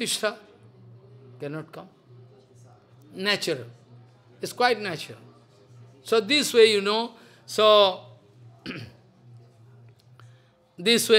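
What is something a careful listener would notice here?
An elderly man speaks slowly and expressively into a microphone, with long pauses.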